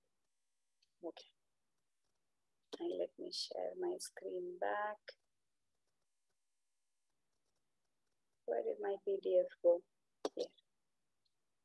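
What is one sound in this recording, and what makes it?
A woman speaks over an online call, in bursts with pauses.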